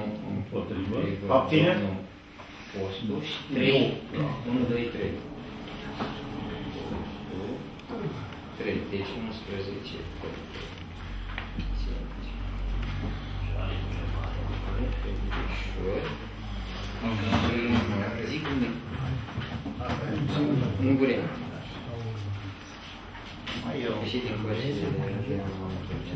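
Men talk through microphones.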